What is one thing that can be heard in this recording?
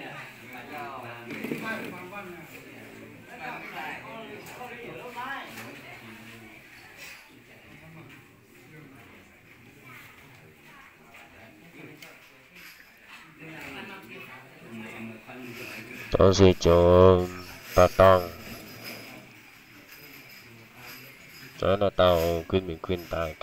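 Several men talk quietly in a room.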